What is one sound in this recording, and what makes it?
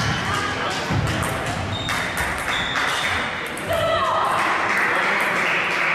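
A table tennis ball clicks back and forth off paddles and a table in a large echoing hall.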